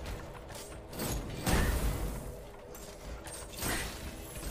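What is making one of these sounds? Heavy weapon blows whoosh and clang in a fight.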